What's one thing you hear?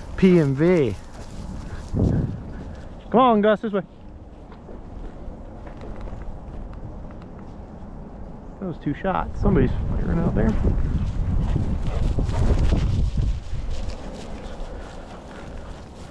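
A dog rustles as it runs through tall grass.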